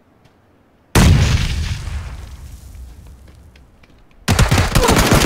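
A loud explosion booms close by and rumbles away.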